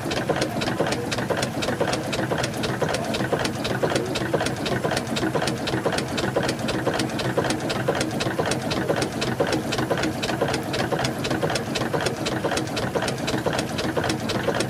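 A steam engine's piston chugs and clicks in a fast, steady rhythm close by.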